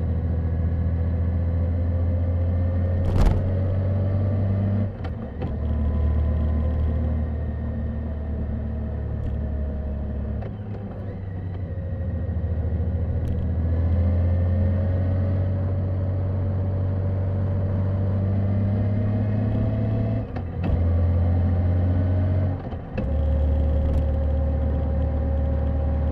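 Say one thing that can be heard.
A motorcycle engine rumbles steadily and rises and falls with the speed.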